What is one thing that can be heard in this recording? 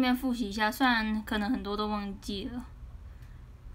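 A young woman speaks close to a microphone in a high, lively voice.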